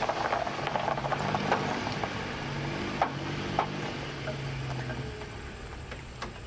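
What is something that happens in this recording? A car engine idles nearby.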